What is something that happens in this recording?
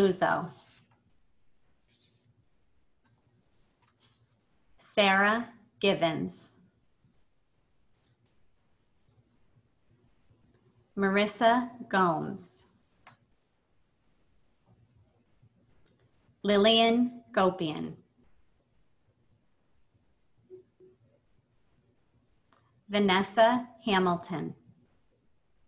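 A woman reads out names calmly over an online call, with pauses between them.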